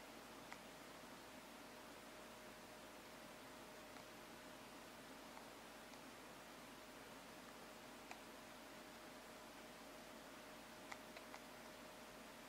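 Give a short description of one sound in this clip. Buttons on a game controller click softly now and then.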